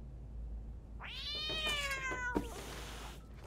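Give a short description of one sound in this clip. A cat yowls loudly.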